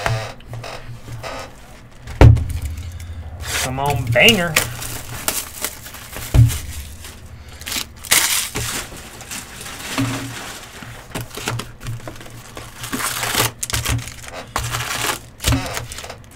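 A plastic wrapper crinkles and tears close by.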